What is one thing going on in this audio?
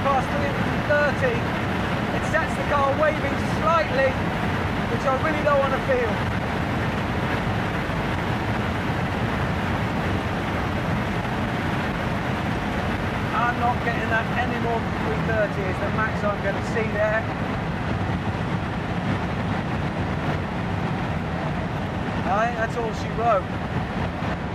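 A man talks excitedly over the engine noise, close by.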